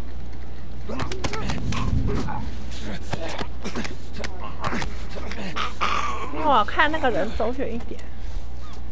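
A man grapples and scuffles with another man.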